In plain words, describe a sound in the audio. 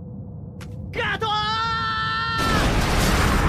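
A young man shouts loudly.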